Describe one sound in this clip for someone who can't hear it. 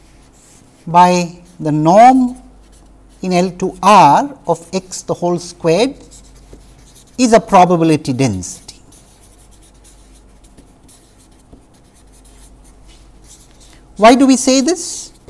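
A felt-tip marker scratches and squeaks across paper.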